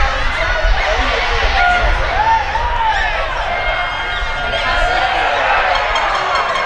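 A crowd of spectators shouts and chatters outdoors.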